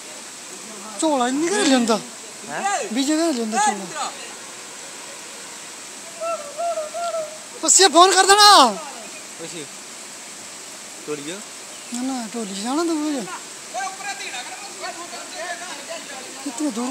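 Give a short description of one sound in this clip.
Men shout loudly outdoors nearby.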